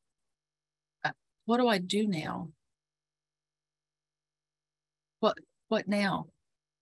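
A woman speaks calmly through an online call microphone, in short phrases with pauses.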